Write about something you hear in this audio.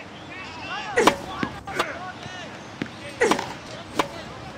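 A tennis racket strikes a ball with a sharp whack.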